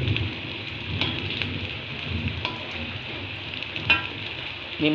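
A metal spatula scrapes and clinks against a wok.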